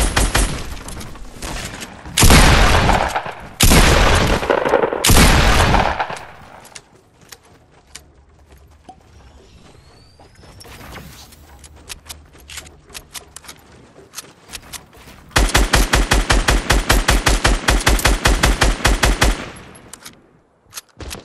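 Wooden walls thud into place as pieces are built.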